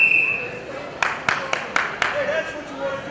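Spectators clap their hands a few times.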